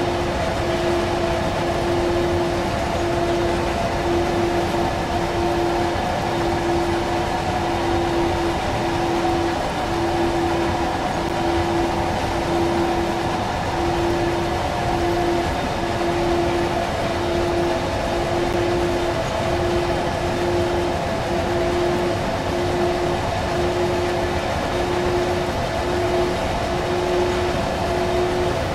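An electric locomotive hums with a steady whine.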